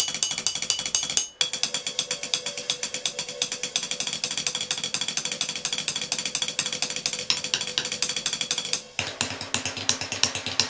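Drumsticks tap rapidly on metal hardware.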